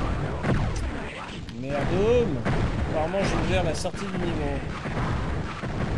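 Magic bolts fire and burst with crackling blasts.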